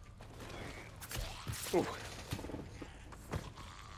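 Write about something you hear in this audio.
A man grunts while wrestling.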